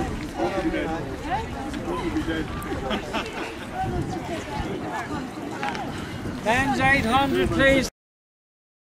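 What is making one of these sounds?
Men and women chatter at a distance outdoors.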